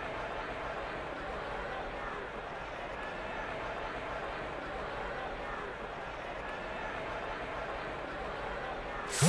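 A large crowd cheers steadily in a stadium.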